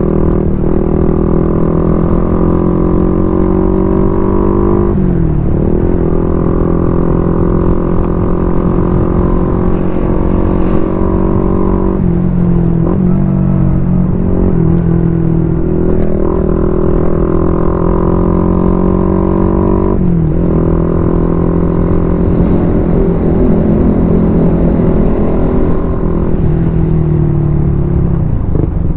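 A motorcycle engine roars loudly up close, its pitch dropping and rising as it shifts gears.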